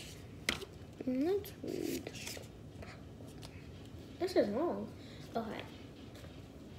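A young girl speaks close by with animation.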